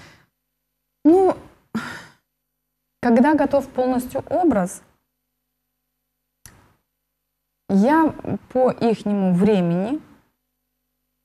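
A woman speaks calmly and clearly into a close microphone, in short phrases with pauses.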